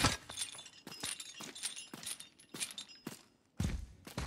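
Chain links rattle and clink.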